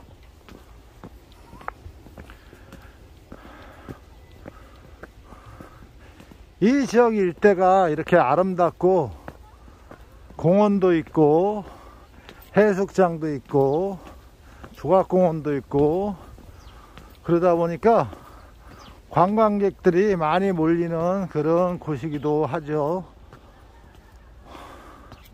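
Footsteps scuff on a stone path.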